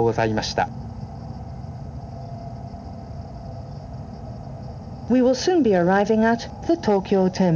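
A stopped train hums steadily.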